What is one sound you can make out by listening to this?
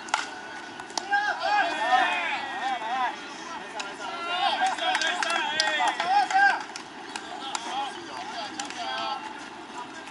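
Young men shout and cheer across an open field.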